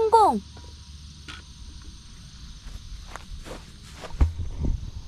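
A park golf club taps a ball.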